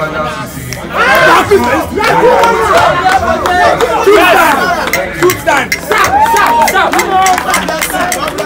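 A crowd of men shouts and chants outdoors.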